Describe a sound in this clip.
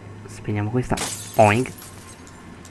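A light bulb shatters with a sharp crack of breaking glass.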